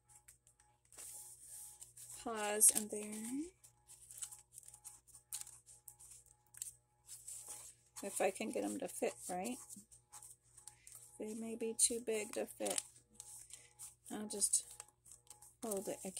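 Paper rustles and crinkles under hands.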